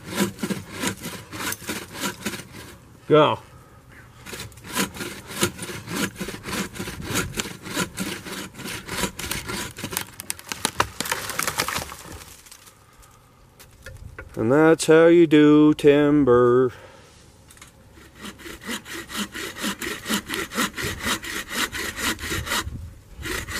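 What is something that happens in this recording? A hand saw cuts through wood with quick, rhythmic strokes.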